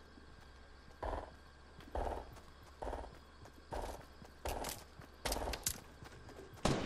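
Footsteps thud on the ground at a steady running pace.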